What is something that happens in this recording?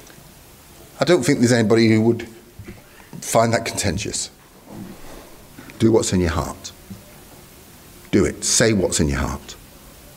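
A middle-aged man speaks with emphasis into a microphone, with pauses between phrases.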